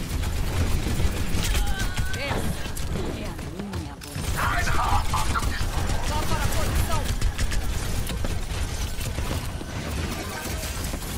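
A game's energy weapon fires in rapid crackling bursts.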